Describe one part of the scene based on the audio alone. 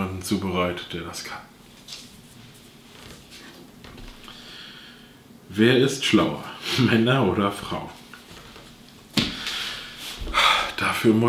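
A man talks casually and close by.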